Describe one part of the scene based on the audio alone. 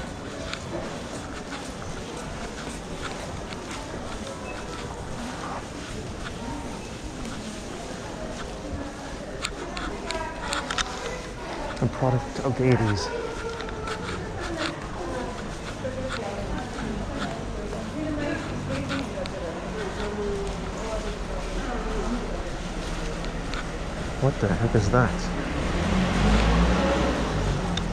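Footsteps walk steadily on a paved floor.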